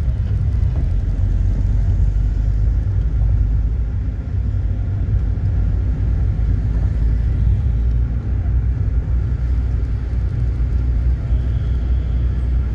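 Wind rumbles against the microphone of a moving vehicle.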